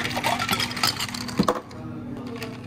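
Ice cubes clatter as they pour into a glass.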